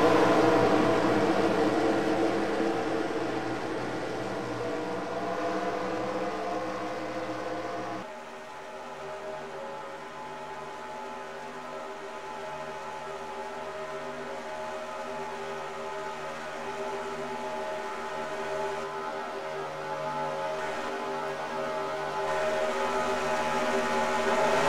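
Race car engines drone steadily, louder at first and then softer.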